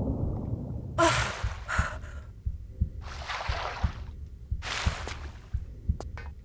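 Water splashes.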